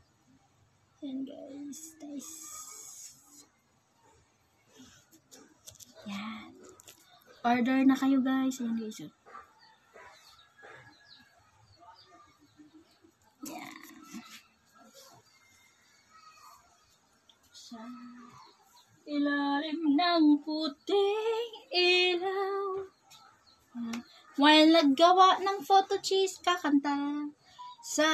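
A woman talks with animation close to the microphone.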